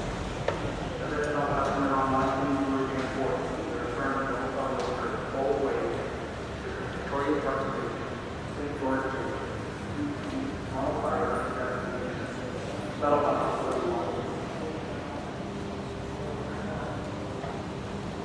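Footsteps tap on a hard floor in an echoing hall.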